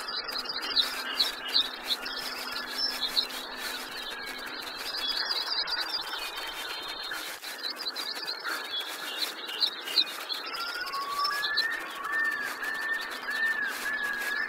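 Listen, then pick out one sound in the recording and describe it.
Hooves clop on a dirt path as a horse gallops.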